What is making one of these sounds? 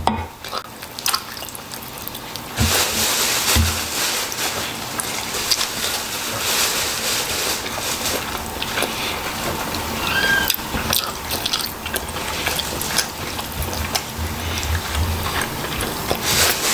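A man chews food noisily and smacks his lips close by.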